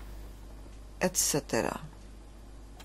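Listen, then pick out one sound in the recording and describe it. A woman sings in a high voice.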